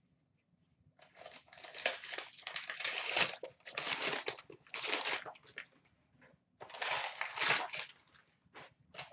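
Foil gift wrap crinkles and tears.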